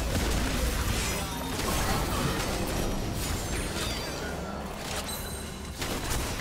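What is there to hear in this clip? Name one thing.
Video game spell effects whoosh and crackle during a battle.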